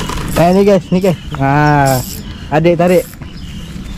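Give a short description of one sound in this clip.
A fishing reel clicks as it is wound.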